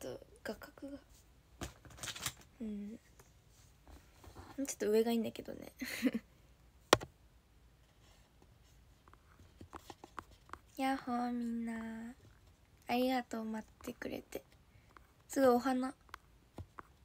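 A young woman speaks softly and playfully, close to a phone microphone.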